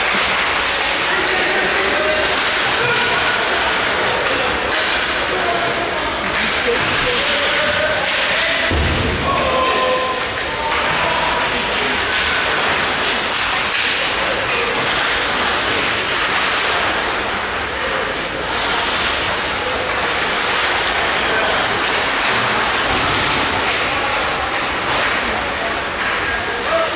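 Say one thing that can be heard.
A crowd of spectators chatters and calls out.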